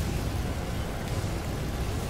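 Electricity crackles and sparks.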